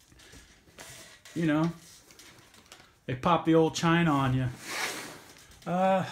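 Hands rustle and pat a padded fabric case.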